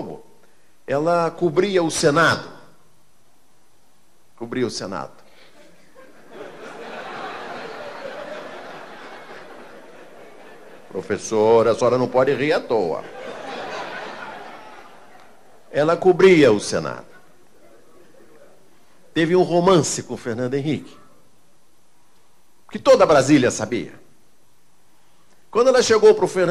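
A middle-aged man speaks into a microphone in short, lively bursts, with pauses between.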